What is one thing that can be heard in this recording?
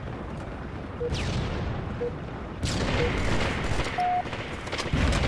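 A short electronic beep sounds once a second in a countdown, ending with a longer, higher beep.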